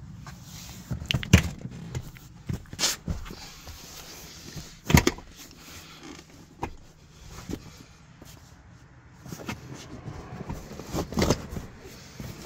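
Soft thumps and knocks sound as a hand presses into a seat.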